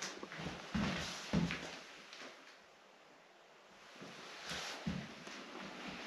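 Footsteps crunch and scuff across a littered floor.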